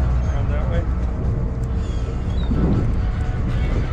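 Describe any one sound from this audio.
A fishing reel clicks and whirs as it is wound.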